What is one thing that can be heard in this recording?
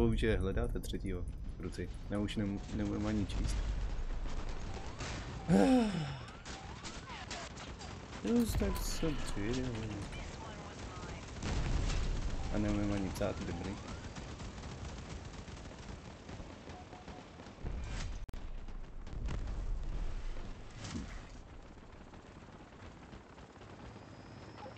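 Gunfire and explosions boom from a game.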